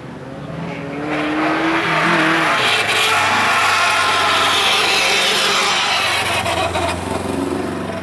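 A rally car roars past close by and fades away.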